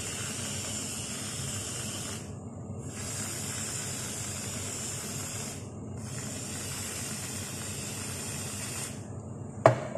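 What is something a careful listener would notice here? A can of whipped cream hisses as it sprays in bursts.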